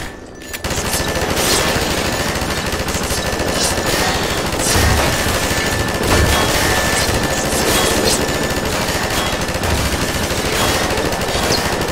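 A heavy gun fires in rapid bursts, echoing in a tunnel.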